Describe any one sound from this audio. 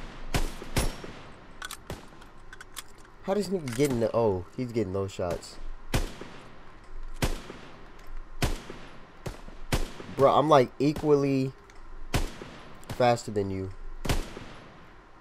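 Rifle shots crack sharply, each followed by a short echo.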